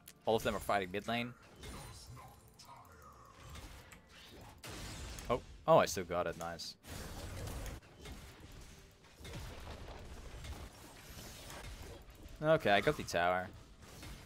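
Game combat sound effects clash and whoosh.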